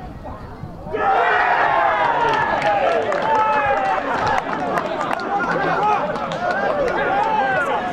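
A small crowd cheers and shouts outdoors.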